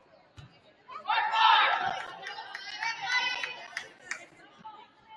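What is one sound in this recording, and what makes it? Spectators call out and cheer in a large echoing hall.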